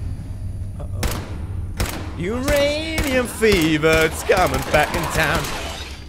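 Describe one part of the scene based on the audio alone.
Rapid gunfire cracks in short bursts.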